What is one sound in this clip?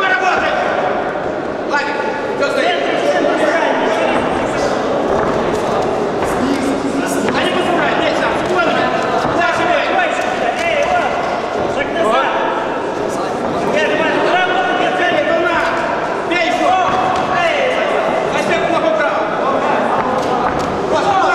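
Men in the audience shout encouragement in an echoing sports hall.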